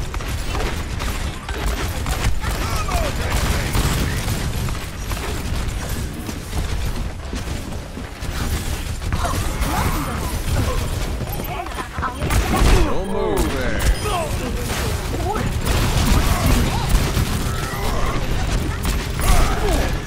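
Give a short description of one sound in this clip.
Gunshots fire rapidly in a video game.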